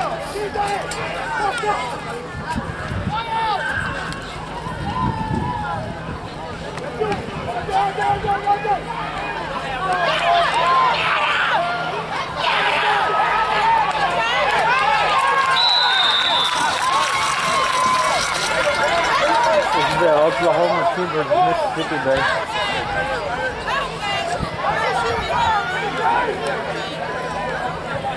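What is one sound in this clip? A crowd of spectators shouts and cheers nearby, growing louder during the play.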